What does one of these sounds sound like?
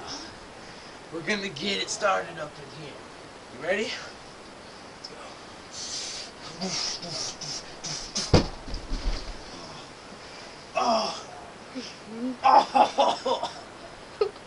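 A blanket rustles and swishes as it is flung about.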